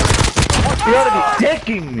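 Gunshots crack at close range.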